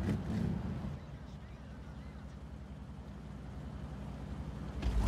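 A tank engine rumbles steadily at idle.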